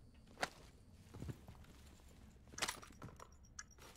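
Footsteps clank on a metal ladder.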